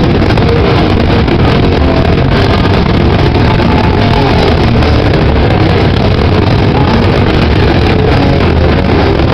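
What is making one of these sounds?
An electric guitar plays loud, distorted chords.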